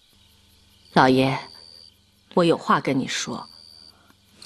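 A middle-aged woman speaks calmly and quietly nearby.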